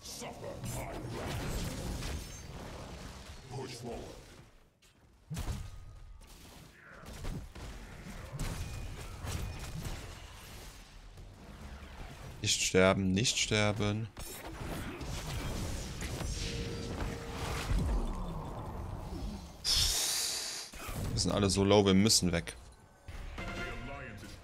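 Game combat sounds clash and burst in quick bursts.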